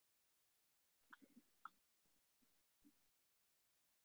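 A man speaks softly and calmly through an online call.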